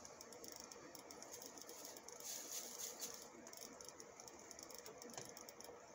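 A man puffs softly on a cigar.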